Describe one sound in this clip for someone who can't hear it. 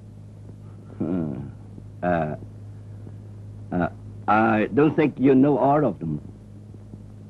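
A man speaks loudly and sharply, in short bursts.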